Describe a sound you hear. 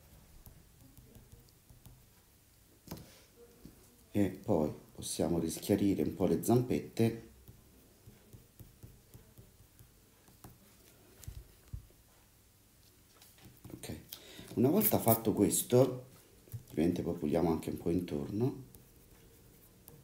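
An eraser rubs on paper.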